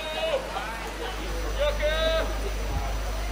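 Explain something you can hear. Young men call out loudly across an open field.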